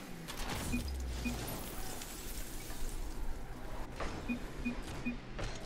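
A video game car's engine roars.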